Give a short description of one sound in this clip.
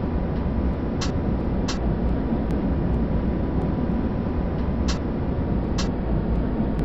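Tram wheels click over rail joints.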